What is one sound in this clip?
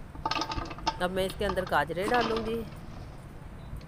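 Carrot sticks tumble and rattle into a metal pot.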